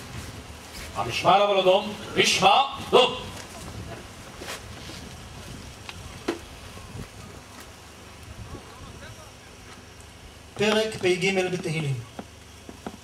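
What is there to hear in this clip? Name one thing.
An elderly man speaks slowly and solemnly into a microphone, heard through a loudspeaker outdoors.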